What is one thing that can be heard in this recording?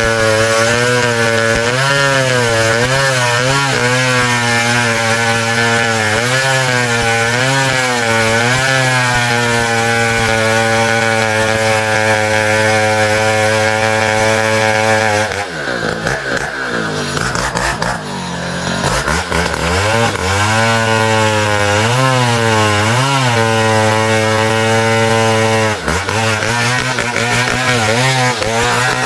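A chainsaw engine roars loudly and close, its pitch wavering as it bites into wood.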